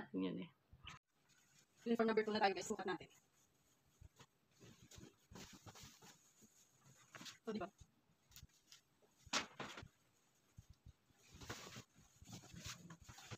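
Clothes rustle as a woman handles them.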